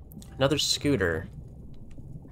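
A young man speaks briefly into a microphone with animation.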